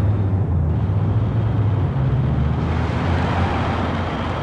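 A car engine hums as another car drives past close by.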